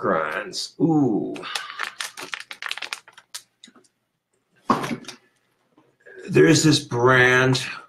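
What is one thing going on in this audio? A plastic snack bag crinkles as it is shaken.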